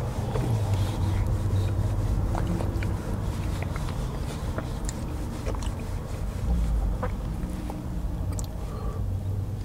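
A middle-aged man talks calmly close by.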